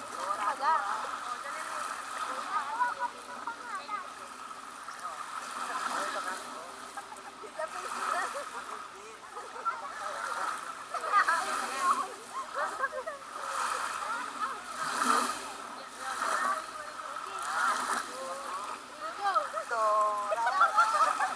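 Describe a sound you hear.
Children shout and laugh excitedly nearby.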